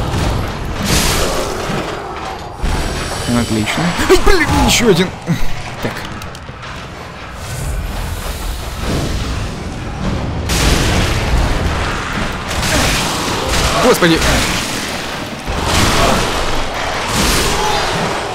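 Blows land with heavy thuds and clangs.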